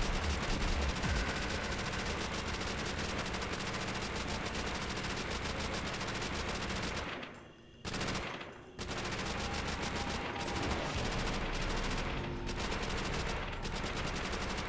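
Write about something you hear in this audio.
A rifle fires rapid shots in bursts.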